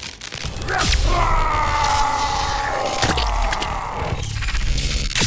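Electricity crackles and hums loudly.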